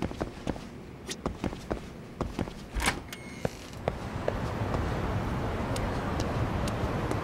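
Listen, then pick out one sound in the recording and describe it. Footsteps walk on pavement outdoors.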